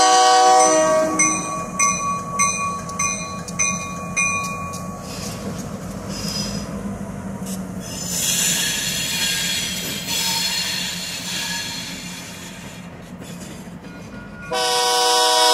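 A diesel locomotive engine rumbles steadily as it passes.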